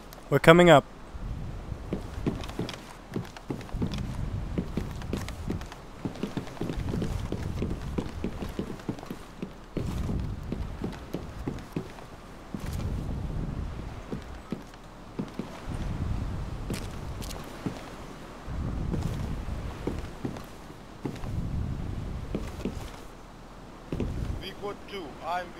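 Footsteps thud on a metal deck and stairs.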